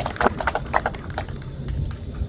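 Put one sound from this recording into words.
A small group applauds outdoors.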